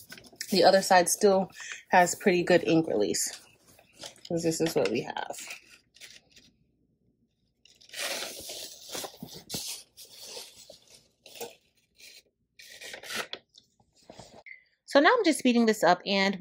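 Cloth rustles and crinkles as it is handled.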